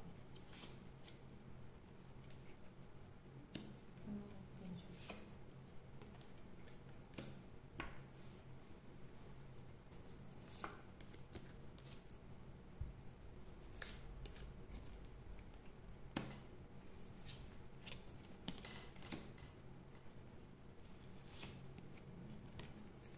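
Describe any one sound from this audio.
Cards tap and slide softly on a tabletop.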